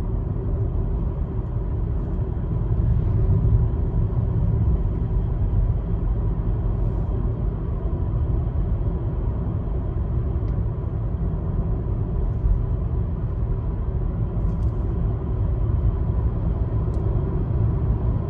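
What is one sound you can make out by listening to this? A car's engine hums steadily from inside the car.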